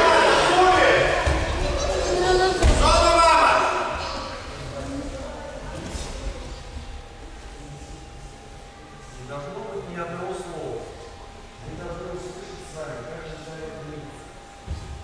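A man speaks loudly in a large echoing hall.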